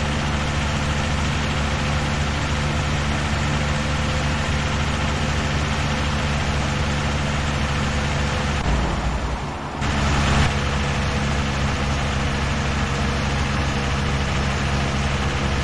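Tyres roll on asphalt with a steady road noise.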